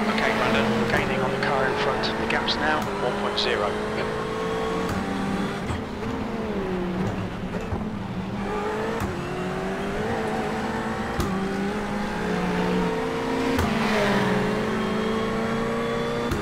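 A racing car engine roars steadily, rising and falling in pitch as it revs.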